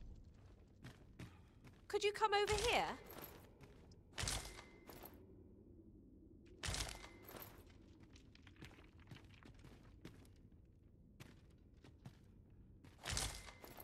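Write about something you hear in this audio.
Footsteps crunch on rough ground.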